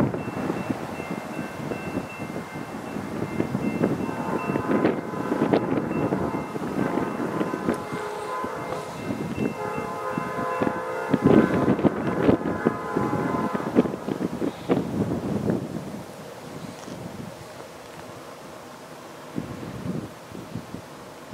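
A train engine rumbles as it approaches from afar.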